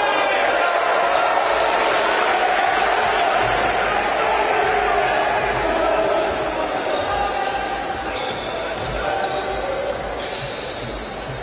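A crowd cheers and chatters loudly in an echoing arena, then quietens a little.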